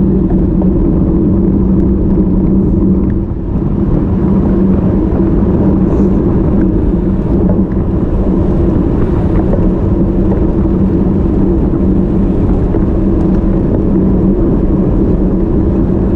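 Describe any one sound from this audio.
Wind rushes loudly past outdoors.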